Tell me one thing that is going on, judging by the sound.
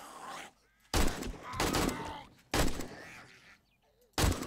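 A rifle fires loud bursts of shots.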